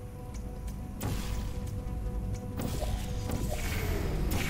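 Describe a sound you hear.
A game gun fires with short electronic zaps.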